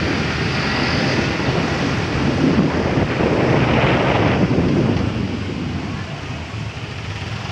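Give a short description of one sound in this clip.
Wind rushes past the microphone outdoors.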